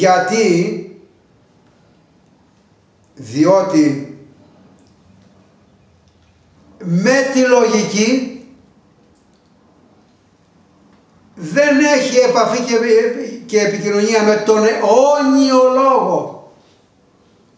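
An elderly man speaks expressively close to the microphone, pausing between phrases.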